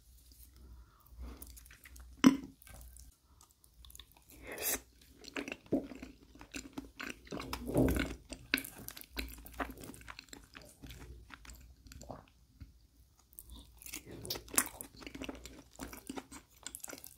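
A man chews food wetly and smacks his lips close up.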